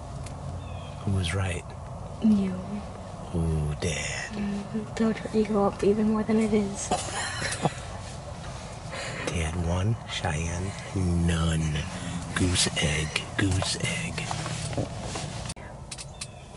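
A young woman talks and laughs softly close by.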